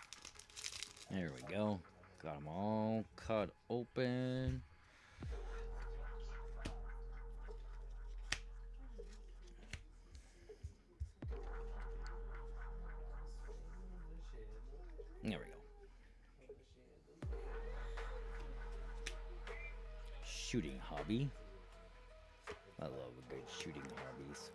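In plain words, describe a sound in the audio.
Playing cards slide and tap softly against each other.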